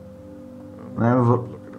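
A young man makes a short, loud vocal sound close to a microphone.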